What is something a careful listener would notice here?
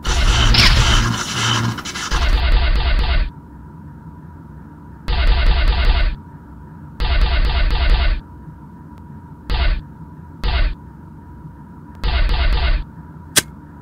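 Electronic blasts sound in short bursts.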